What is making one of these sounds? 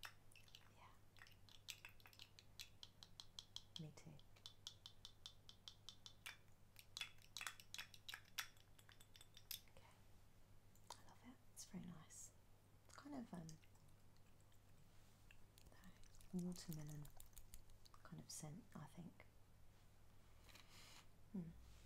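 A woman talks softly and close by.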